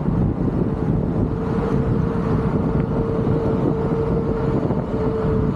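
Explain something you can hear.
An electric motor whines steadily.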